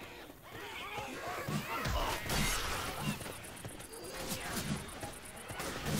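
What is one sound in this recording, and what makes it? A blade strikes and slashes bodies with heavy wet thuds.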